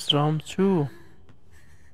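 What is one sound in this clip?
A young man speaks briefly and with animation into a microphone.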